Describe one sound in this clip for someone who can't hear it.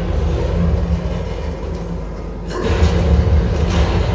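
A heavy chest creaks open with a thud in a video game.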